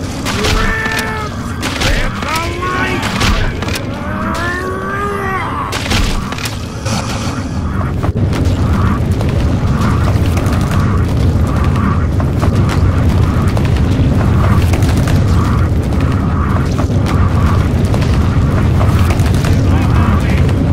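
A giant worm rumbles low as it crawls over the ground.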